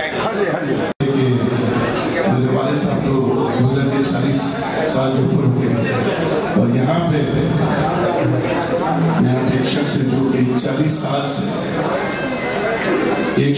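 A middle-aged man sings into a microphone over an amplified loudspeaker.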